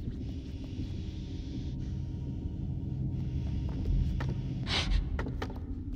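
Small footsteps scramble and creak on wooden shelves.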